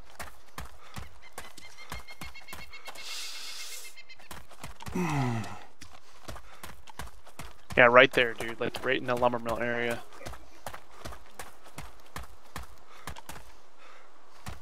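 Footsteps crunch steadily on gravel.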